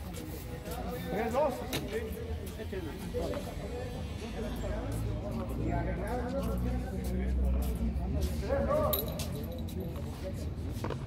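Young men call out and talk outdoors.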